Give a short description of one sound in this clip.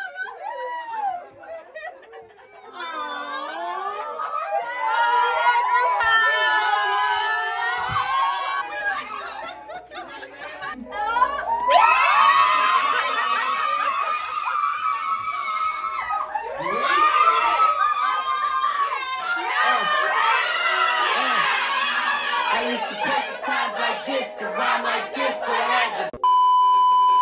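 Young women scream and cheer excitedly close by.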